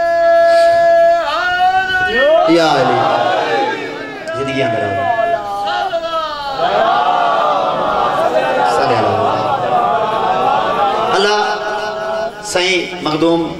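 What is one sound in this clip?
A young man chants loudly through a microphone.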